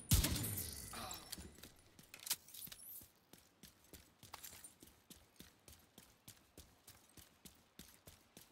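Heavy footsteps run quickly over rough ground.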